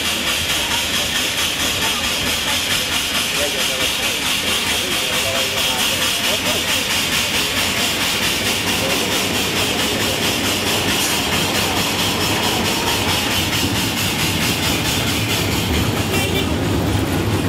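A crane's diesel engine rumbles steadily close by.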